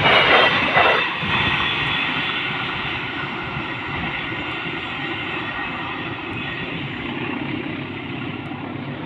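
The rumble of a freight train fades into the distance.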